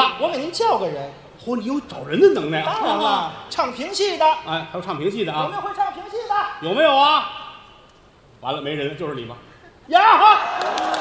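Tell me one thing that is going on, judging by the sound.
A middle-aged man speaks with animation into a microphone on a stage.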